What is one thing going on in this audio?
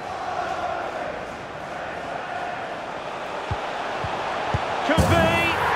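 A stadium crowd roars steadily throughout.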